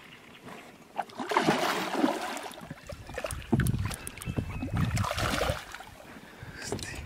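A fish splashes in the water close by.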